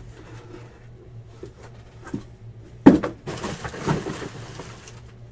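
Small boxes knock together as they are stacked on a table.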